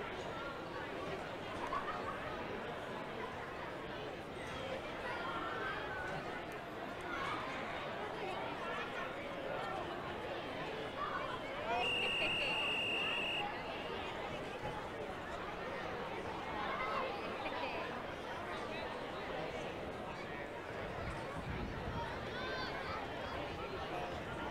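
A crowd of spectators cheers and chatters outdoors at a distance.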